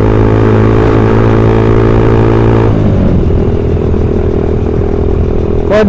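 A motorcycle engine drones loudly close by, then drops in pitch and settles lower.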